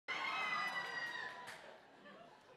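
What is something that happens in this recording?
A band's final chord rings out and slowly fades in a large hall.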